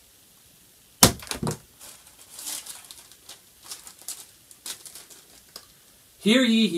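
A plastic bag crinkles in a young man's hands.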